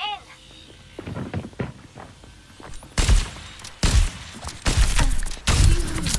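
A rifle fires loud, booming shots in bursts.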